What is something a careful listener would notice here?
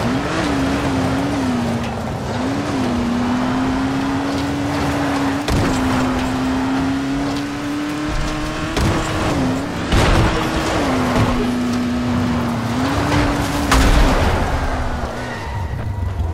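A car engine drones and revs up and down.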